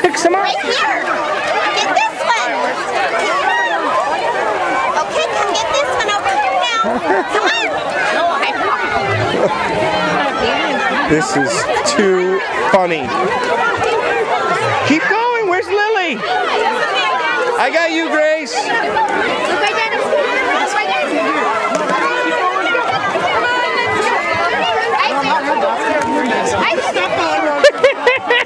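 A crowd of young children chatter and shout excitedly outdoors.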